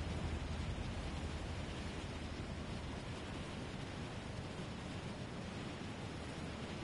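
Wind rushes loudly and steadily past during a fall through the air.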